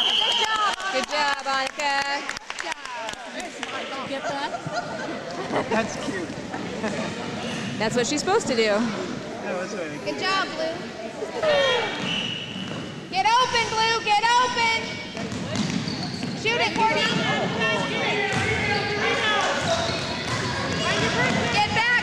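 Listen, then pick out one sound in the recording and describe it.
Young children shout and call out in a large echoing gym.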